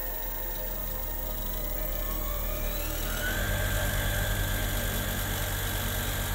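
An alternator whirs steadily, rising in pitch as it speeds up.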